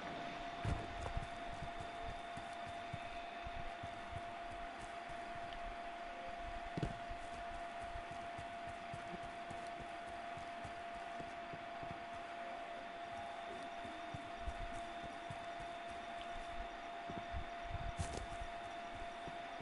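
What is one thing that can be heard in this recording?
Footsteps run over grass and soft ground.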